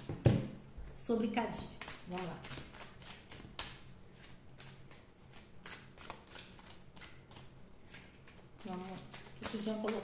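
Playing cards flick and rustle as they are shuffled.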